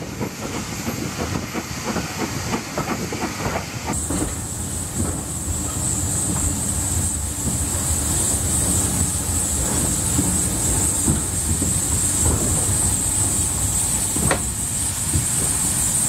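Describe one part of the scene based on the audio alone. A train rumbles and rattles along the tracks.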